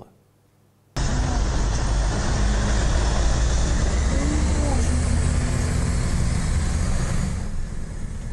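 A heavy truck engine rumbles close by.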